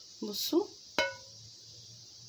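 A metal ladle clinks against a pan with a short ring.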